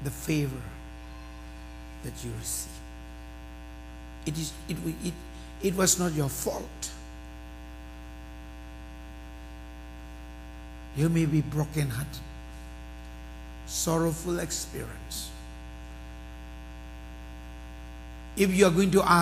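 A man speaks slowly and calmly through a microphone, with long pauses, in an echoing hall.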